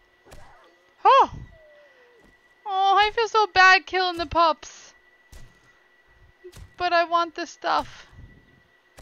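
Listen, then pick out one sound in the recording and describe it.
A wolf yelps and whines in pain.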